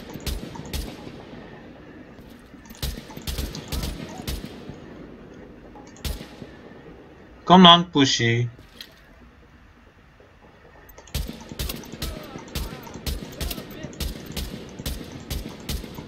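Gunshots crack in bursts, each followed by a short echo.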